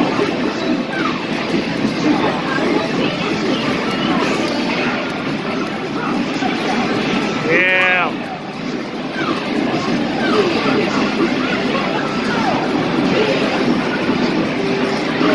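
Punches and kicks from a fighting game thud and smack through a loudspeaker.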